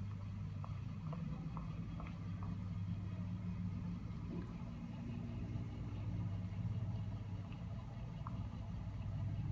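Buttons click softly under thumbs.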